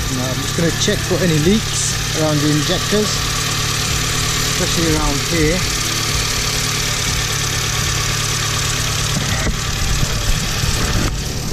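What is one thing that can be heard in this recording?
A car engine idles with a steady, rough hum close by.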